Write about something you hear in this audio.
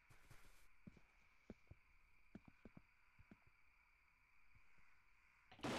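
Footsteps thud slowly on hard ground.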